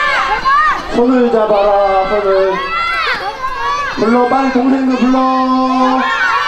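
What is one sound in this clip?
Children sing together in a circle.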